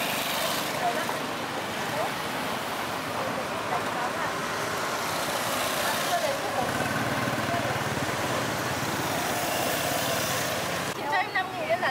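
Women chat nearby in lively voices.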